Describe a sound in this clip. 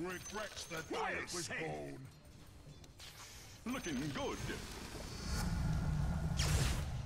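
Magic spells whoosh and crackle in a fast battle.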